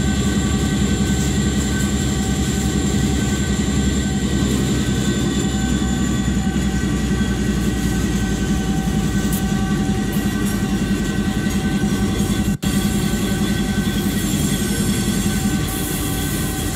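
Train wheels clatter rhythmically over rail joints.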